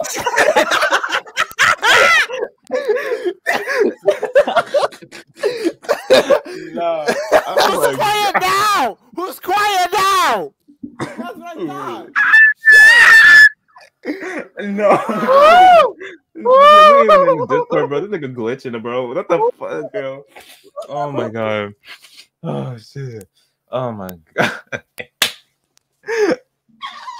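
A young man shouts and laughs excitedly into a close microphone.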